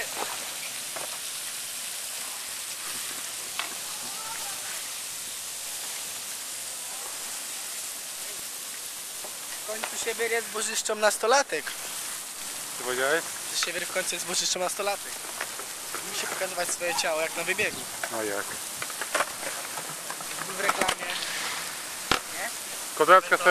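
Water hisses steadily from a sprinkler spraying.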